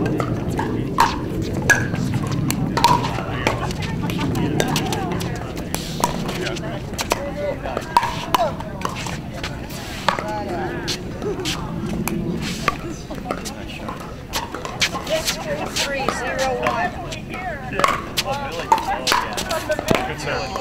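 Paddles smack a plastic ball back and forth in an echoing hall.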